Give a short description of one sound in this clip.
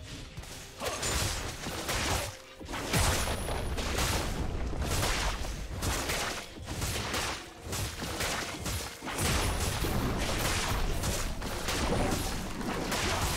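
Game spells blast and clash in a busy fight.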